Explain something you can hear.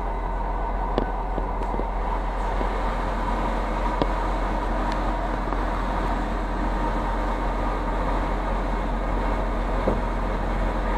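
Wheels knock now and then over rail joints.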